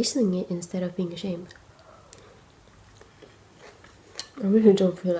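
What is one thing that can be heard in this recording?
A young woman slurps and chews noodles.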